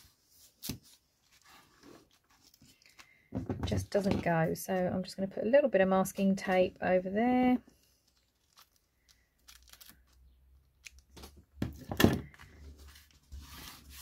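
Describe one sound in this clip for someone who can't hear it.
Paper rustles and crinkles under hands.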